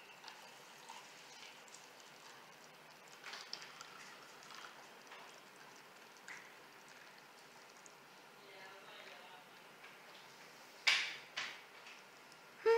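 A thick drink pours softly into a cup.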